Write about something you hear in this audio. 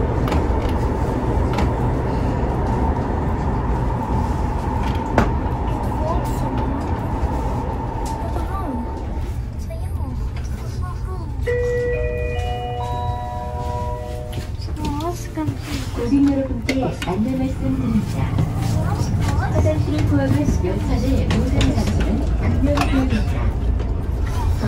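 A train hums and rumbles steadily as it rolls along.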